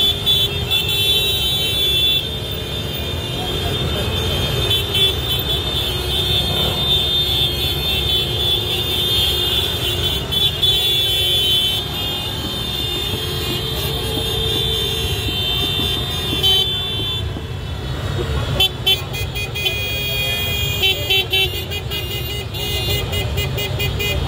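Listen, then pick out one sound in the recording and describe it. A group of motor scooters idle and crawl along outdoors.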